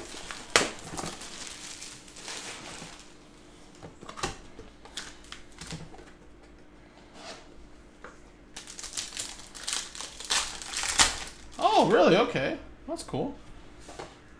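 Foil card packs crinkle and rustle in hands.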